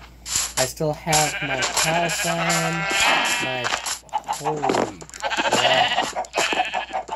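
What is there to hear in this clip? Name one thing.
Many sheep bleat close by.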